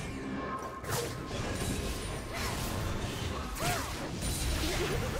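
Magic spells whoosh and crackle in a busy video game battle.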